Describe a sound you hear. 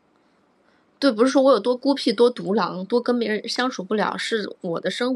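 A young woman talks close to a microphone, with animation.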